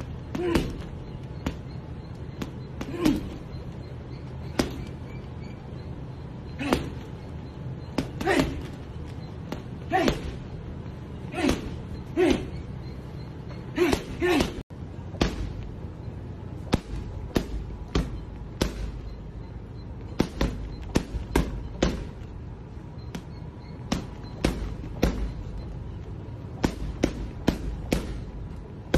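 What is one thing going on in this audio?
Gloved fists thud against a heavy punching bag in quick bursts.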